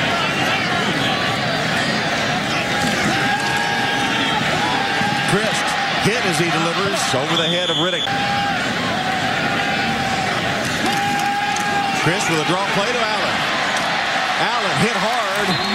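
A large crowd roars steadily in a big open stadium.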